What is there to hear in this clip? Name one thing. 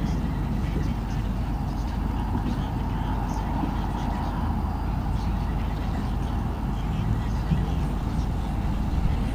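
Wind blows steadily outdoors, rumbling low and rustling leaves.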